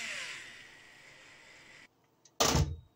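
An electric drill motor whirs and winds down.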